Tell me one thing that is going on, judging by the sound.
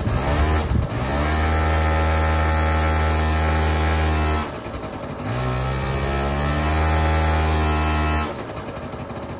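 A small engine roars steadily at high revs, then drops off.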